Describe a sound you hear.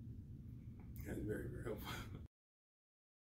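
A man laughs softly.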